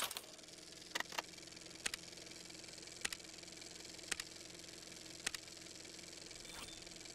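A mechanical counter clicks at a steady pace.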